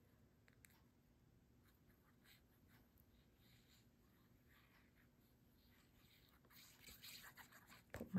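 Glue squelches softly from a squeezed bottle.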